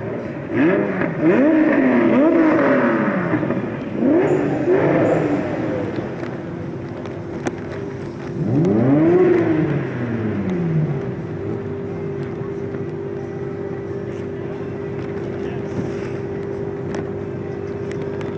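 Tyres squeal as cars slide around a bend.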